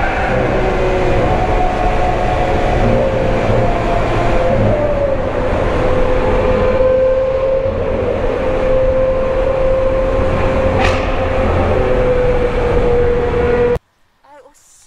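A car engine roars loudly with a steady whine, echoing in a tunnel.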